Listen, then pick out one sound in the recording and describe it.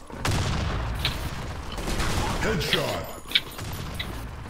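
A rifle fires sharp single shots.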